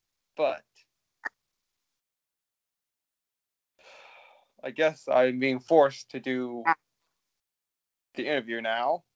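A young man speaks through an online call microphone.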